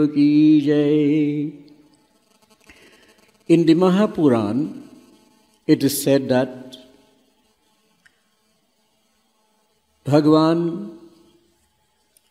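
An elderly man chants in long, drawn-out phrases through a microphone, with pauses between them.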